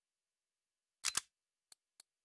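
A short louder whoosh sounds as a menu panel changes.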